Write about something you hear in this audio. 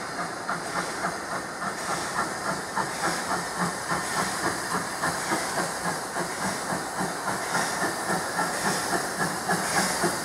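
A steam locomotive chuffs hard in quick, steady beats, growing louder as it approaches.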